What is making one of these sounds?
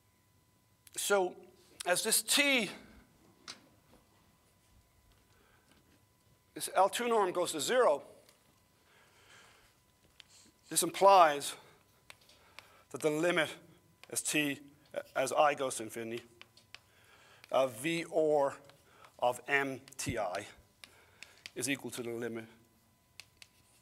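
An older man speaks calmly.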